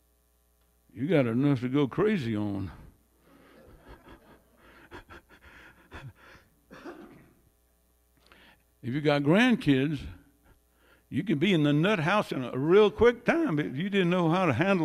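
An elderly man speaks with animation into a microphone through loudspeakers in an echoing room.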